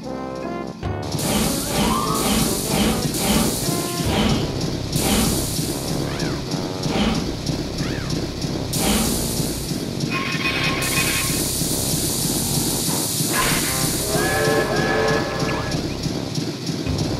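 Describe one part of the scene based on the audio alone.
A steam locomotive chuffs in a steady rhythm.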